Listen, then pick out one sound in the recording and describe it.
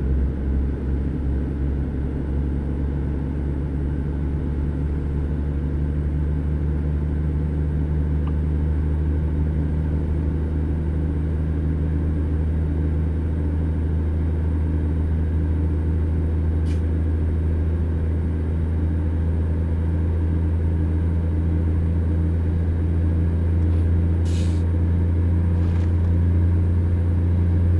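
Tyres hum on the highway.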